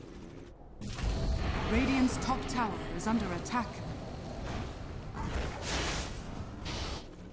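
Fiery magic spells whoosh and crackle.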